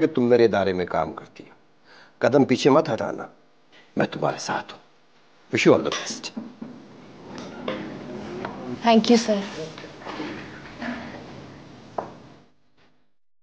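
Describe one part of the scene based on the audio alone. A middle-aged man speaks close by with animation.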